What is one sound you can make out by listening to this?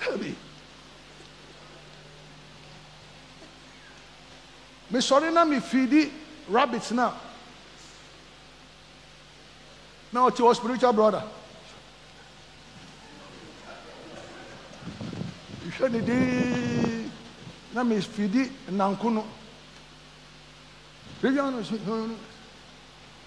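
A man preaches with animation through a microphone, in bursts with long pauses.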